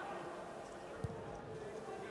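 A ball is kicked with a sharp thud.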